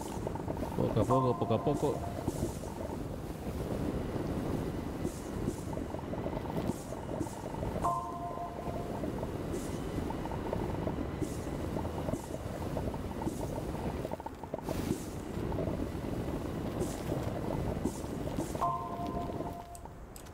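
A short bright chime rings as an item is collected.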